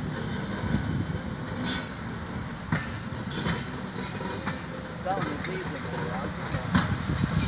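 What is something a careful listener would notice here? A train rumbles along the track, heard from inside a carriage.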